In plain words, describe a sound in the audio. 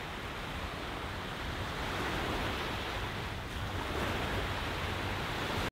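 Waves wash and break steadily onto a shore.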